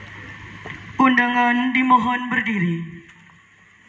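A man shouts a long drawn-out command loudly outdoors.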